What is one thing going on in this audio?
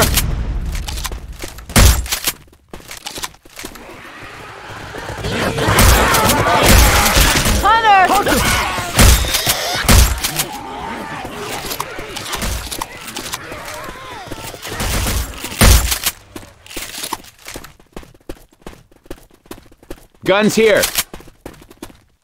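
Gunshots ring out in loud bursts.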